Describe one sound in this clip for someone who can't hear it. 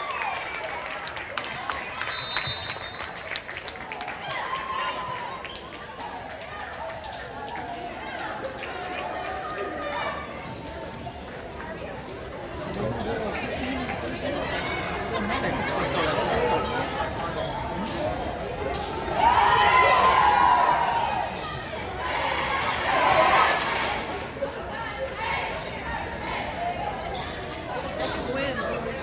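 Young women chatter and call out in a large echoing gym.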